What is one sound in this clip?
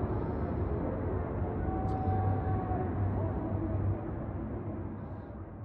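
Distant city traffic hums and rumbles steadily far below.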